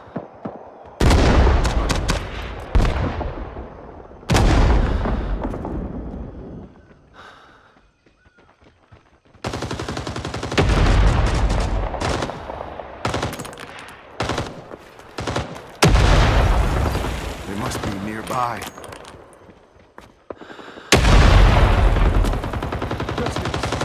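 A machine gun fires in loud bursts.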